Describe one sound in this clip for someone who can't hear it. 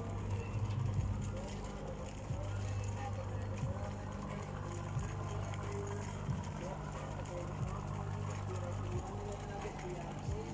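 A moored boat's engine hums steadily nearby.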